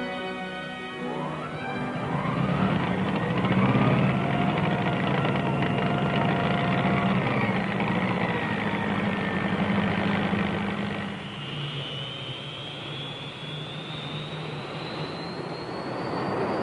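A jet fighter's turbojet engine spools up with a rising whine.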